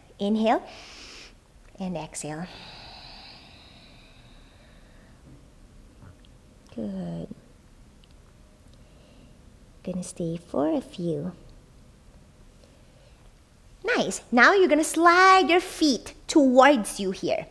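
A young woman speaks calmly and gently, in short phrases, close to a microphone.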